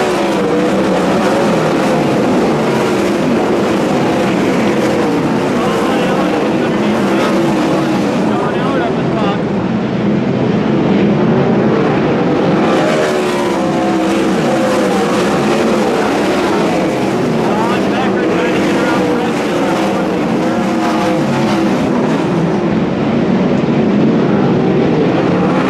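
Several racing car engines roar loudly, their pitch rising and falling.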